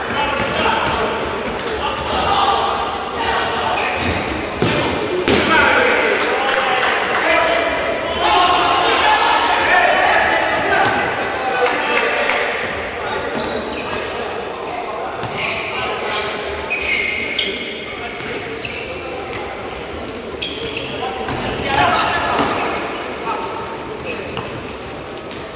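Spectators chatter and shout in an echoing indoor arena.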